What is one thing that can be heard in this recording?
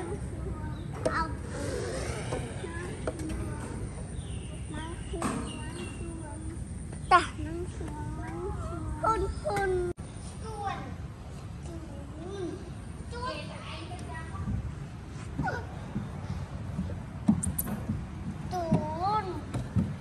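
Young children chatter and call out close by.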